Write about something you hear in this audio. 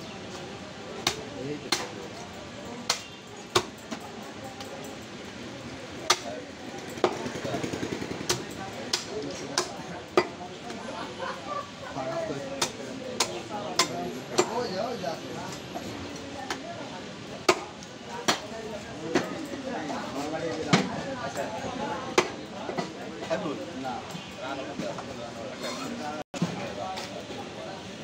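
A cleaver chops meat on a wooden block with sharp, uneven thuds.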